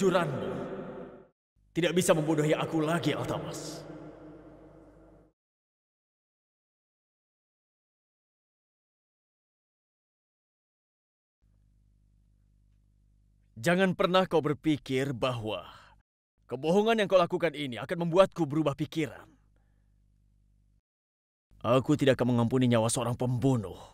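A young man speaks forcefully nearby.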